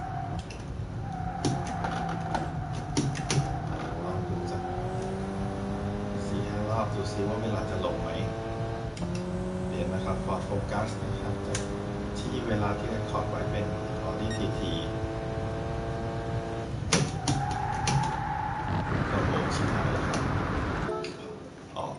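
A racing car engine revs up and drops as it shifts gears.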